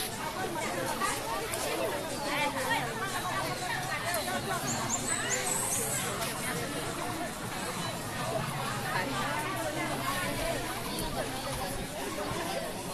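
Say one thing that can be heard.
A crowd of women chatters and murmurs close by outdoors.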